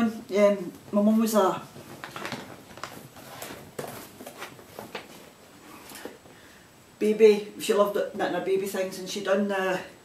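A middle-aged woman talks chattily close by.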